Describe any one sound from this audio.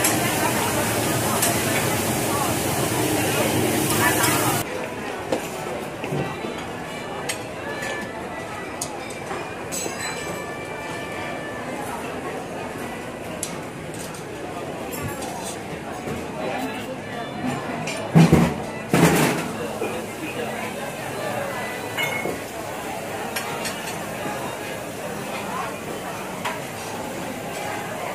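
A crowd of diners murmurs in the background.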